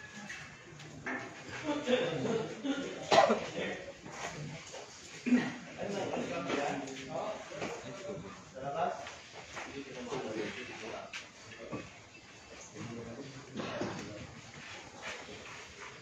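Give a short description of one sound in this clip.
Men talk nearby in a room.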